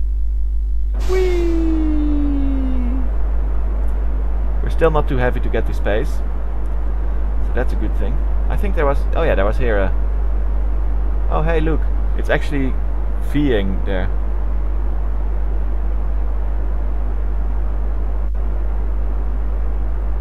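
A rocket engine ignites and roars steadily.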